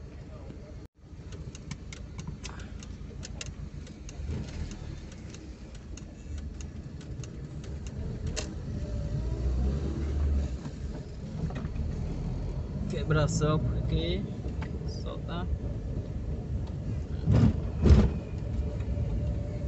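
A car engine hums steadily as the car drives along a road.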